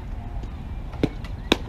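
A ball smacks into a catcher's glove.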